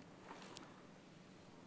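A thick paper page rustles as it is turned.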